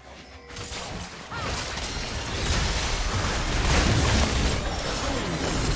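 Magic spells blast and crackle in a fast fight.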